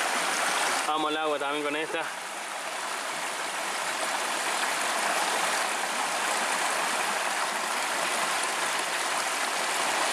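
Water splashes softly as hands move in a shallow stream.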